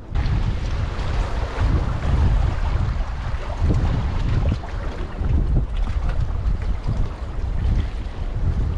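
Wind blows hard across an open microphone outdoors.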